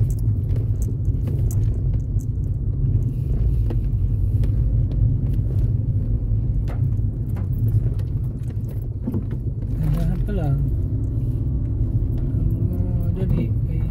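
A car's engine and tyres rumble on a paved road, heard from inside.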